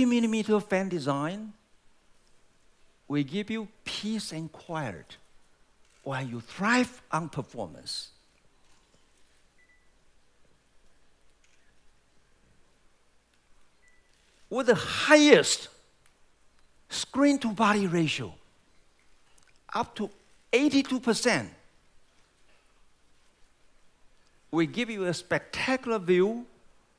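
A man speaks with animation through a microphone, in short phrases with pauses.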